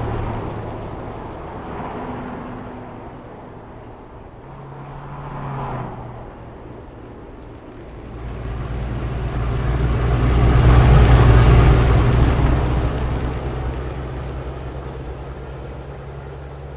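A truck engine rumbles steadily and swells louder as it passes close by.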